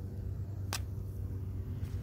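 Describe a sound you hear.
A hand handles mushrooms with soft rustles.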